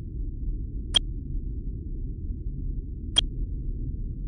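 Short game chimes sound twice.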